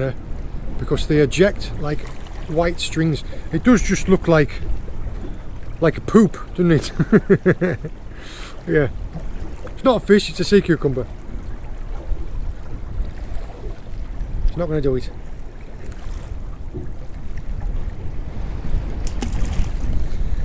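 Waves lap against a small boat.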